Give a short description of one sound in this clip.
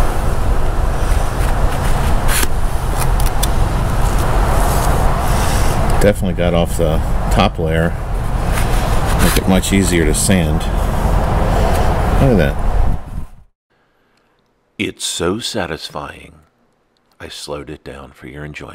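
A putty knife scrapes and smears filler across a hard surface.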